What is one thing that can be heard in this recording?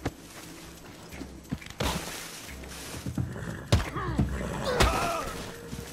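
Heavy punches land on a body with dull thuds.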